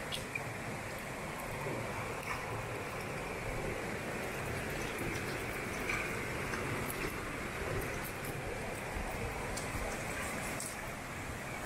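Wet fish pieces slap softly onto stone.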